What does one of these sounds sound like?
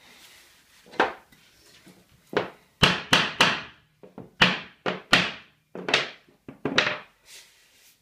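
A hammer taps sharply on a wooden floor, with short ringing knocks.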